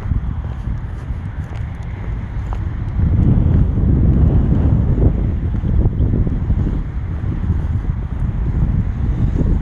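Wind blows hard across the microphone outdoors, rumbling and buffeting.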